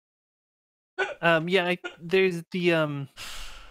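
A man speaks with animation over an online call.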